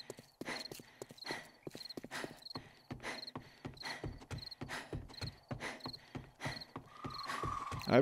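Footsteps thud steadily on hollow wooden planks.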